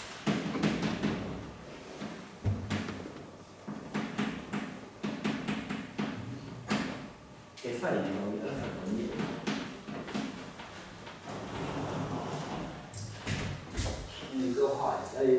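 A man lectures steadily in a room with a slight echo.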